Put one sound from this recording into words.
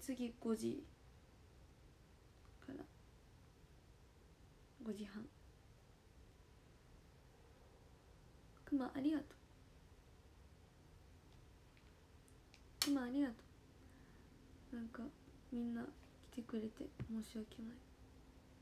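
A young woman speaks softly in short bursts close to a microphone.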